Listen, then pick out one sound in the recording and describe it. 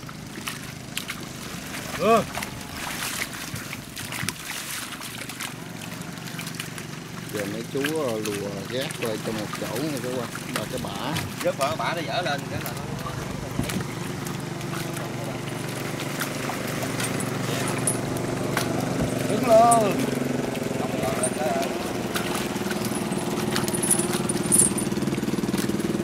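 Fish splash and thrash in shallow water.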